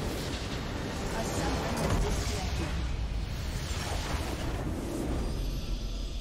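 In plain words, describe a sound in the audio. A large structure in the game crumbles with a booming explosion.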